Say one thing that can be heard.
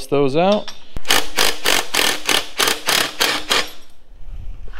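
A power drill rattles in quick short bursts.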